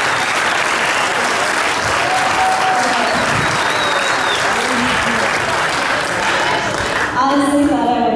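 A crowd chatters and laughs loudly.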